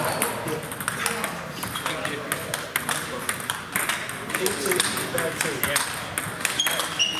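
Table tennis balls click rapidly on tables and paddles in a large echoing hall.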